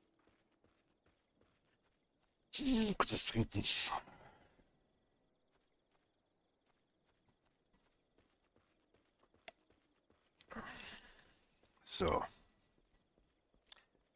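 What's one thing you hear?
Footsteps tread softly along a forest path.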